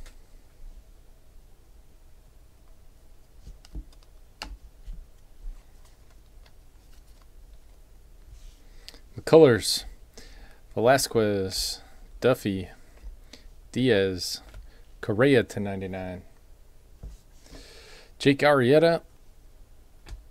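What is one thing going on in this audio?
Trading cards slide and tap against each other as they are shuffled.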